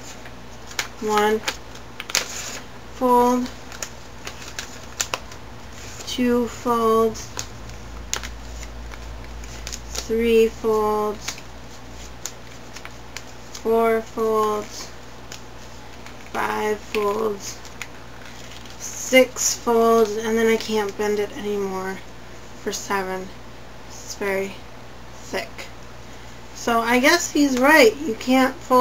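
A young woman talks calmly and close by, in short bursts.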